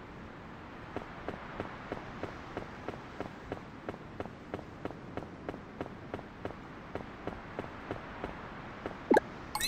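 Footsteps tap quickly and steadily on stone.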